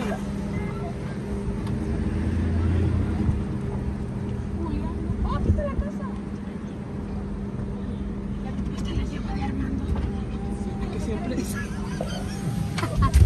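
Tyres crunch over a dirt road.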